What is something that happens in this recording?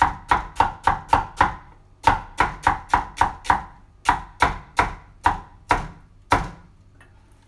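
A knife chops quickly on a wooden board.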